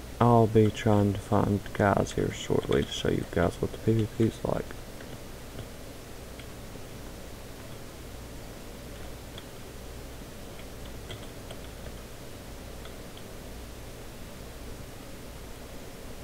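Footsteps tread steadily on hard ground and wood.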